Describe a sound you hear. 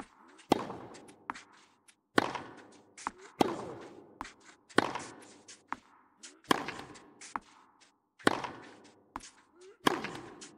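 Tennis balls are struck hard with rackets in a steady back-and-forth rally, echoing in a large stadium.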